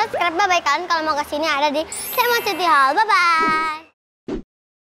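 A young girl speaks with animation into a close microphone.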